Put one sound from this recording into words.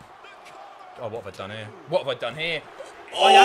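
Two young men shout and cheer excitedly through a microphone.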